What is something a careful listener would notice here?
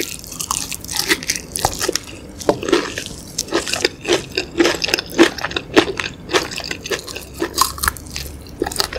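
A woman chews crunchy fried chicken close to a microphone, with wet crackling bites.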